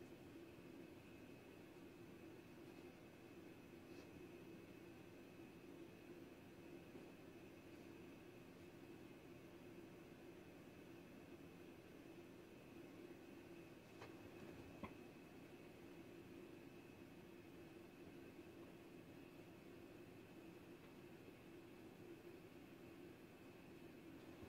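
A lamp hums and buzzes steadily.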